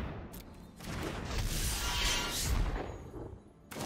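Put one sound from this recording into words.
A whooshing, crackling magic effect bursts out.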